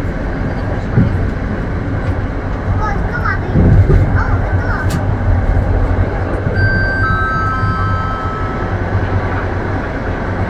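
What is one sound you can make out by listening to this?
Train wheels clatter over rail joints and points.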